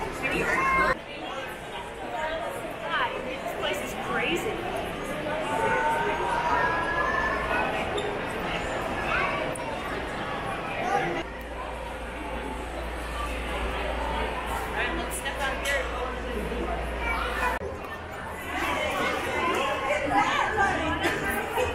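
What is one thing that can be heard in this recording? A crowd of men, women and children chatters in a large echoing hall.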